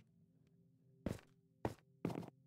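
A pickaxe knocks sharply against stone.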